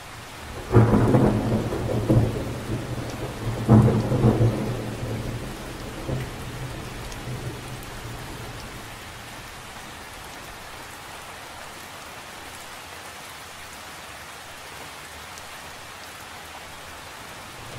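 Rain patters steadily on the surface of a lake outdoors.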